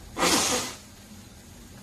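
An elderly man blows his nose loudly into a tissue.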